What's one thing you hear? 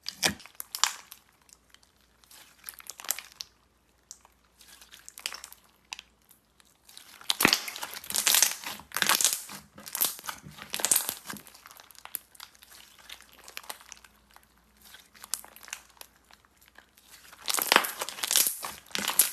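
Slime stretches and crackles with crisp bursts.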